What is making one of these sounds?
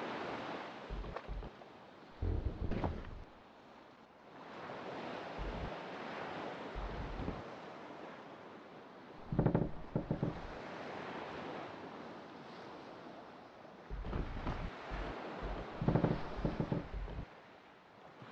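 Wooden planks thud and knock as a boat rocks.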